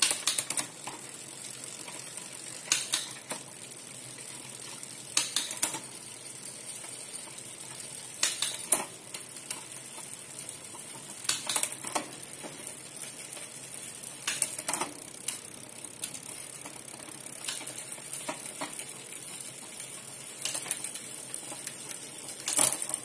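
A bicycle chain whirs over a spinning rear cassette.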